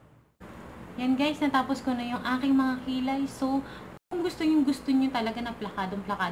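A young woman talks calmly and close up.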